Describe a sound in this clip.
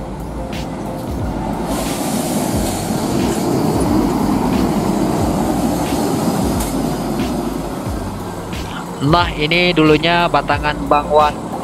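A bus engine rumbles as the bus pulls away.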